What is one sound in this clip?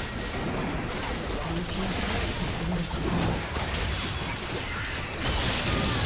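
Spell effects and weapon hits crackle and clash in a game fight.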